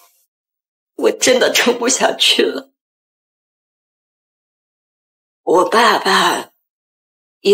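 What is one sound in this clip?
A young woman speaks tearfully and close by, her voice breaking.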